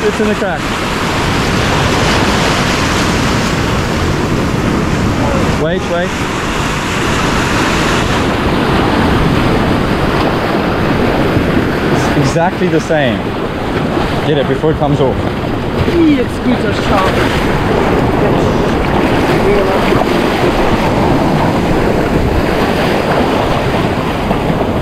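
Waves crash and wash over rocks nearby.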